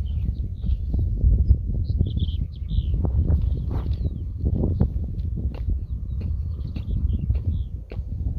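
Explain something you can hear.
A hand tool scrapes and digs into dry, stony soil.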